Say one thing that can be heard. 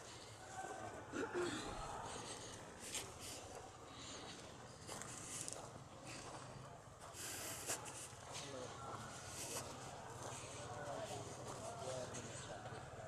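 Men talk quietly nearby, outdoors.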